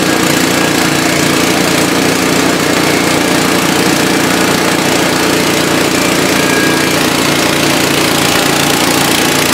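A small petrol engine runs loudly and steadily.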